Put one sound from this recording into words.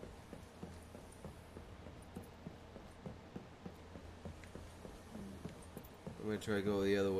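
Footsteps thud at a steady pace.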